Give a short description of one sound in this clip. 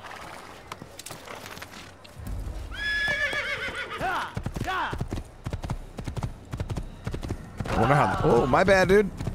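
Horse hooves clop on the ground.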